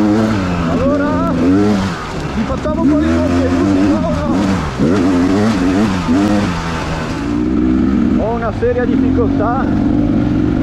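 A dirt bike engine revs up and down close by.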